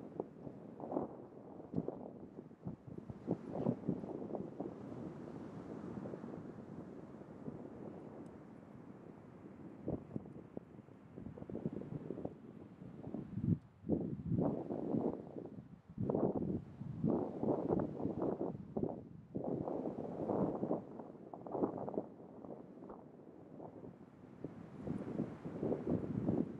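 An elephant seal gurgles and snorts with deep, rumbling breaths close by.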